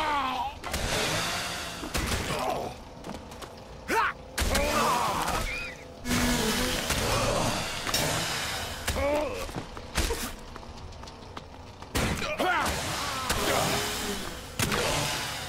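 Swords clash and blows land in a fast fight.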